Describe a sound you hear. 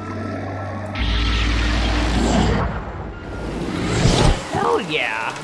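An old television hisses loudly with static.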